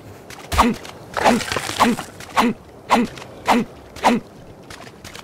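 A tool chops repeatedly into a carcass with wet thuds.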